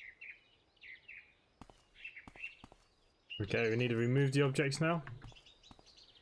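Footsteps tread on asphalt.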